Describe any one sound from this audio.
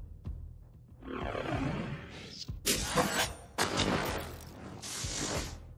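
Menu buttons click and whoosh.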